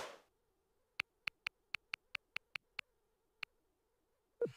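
Short electronic clicks sound in quick succession as a game menu is scrolled.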